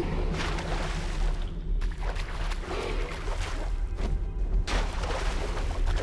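Water splashes softly as someone wades through a pool.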